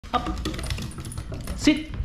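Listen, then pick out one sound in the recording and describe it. A dog's claws tap on a wooden floor.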